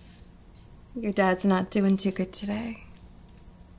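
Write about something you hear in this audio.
A woman speaks briefly and quietly nearby.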